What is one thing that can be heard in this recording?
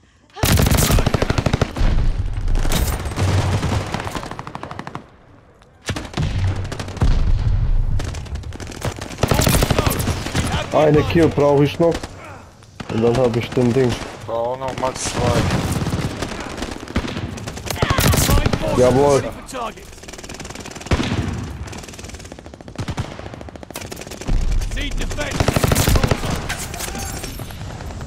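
A machine gun fires rapid bursts at close range.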